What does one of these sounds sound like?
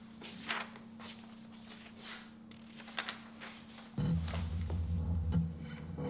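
Sheets of paper rustle in a woman's hands.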